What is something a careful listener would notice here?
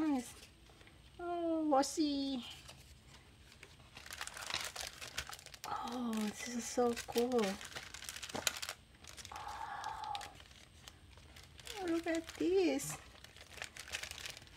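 Plastic packaging crinkles and rustles as it is handled.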